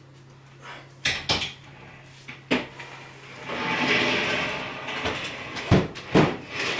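A table thumps and scrapes on the floor.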